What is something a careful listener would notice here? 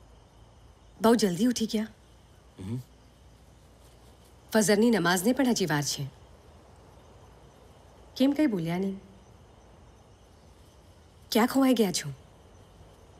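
A young woman speaks softly and emotionally, close by.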